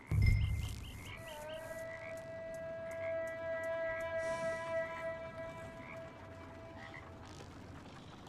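A horse's hooves clop on a wooden bridge.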